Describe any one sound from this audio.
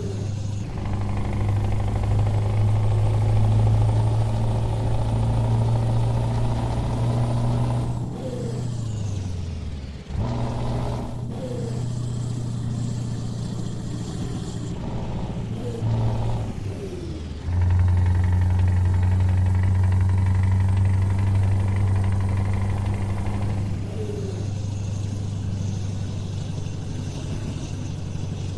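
A truck engine hums steadily, its pitch shifting as gears change.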